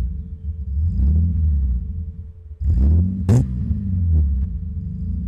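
A car exhaust pops and crackles.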